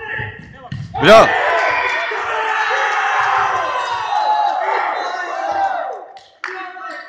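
Young men cheer and shout loudly.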